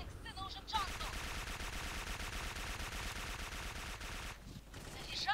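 A heavy gun fires in a rapid, rattling stream.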